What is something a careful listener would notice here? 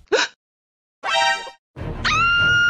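A young woman screams in alarm.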